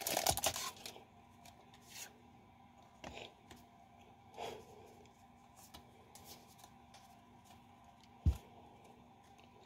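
Cards slide and shuffle against each other.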